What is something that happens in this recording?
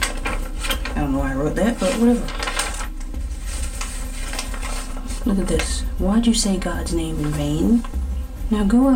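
A woman reads aloud slowly and expressively, close to a microphone.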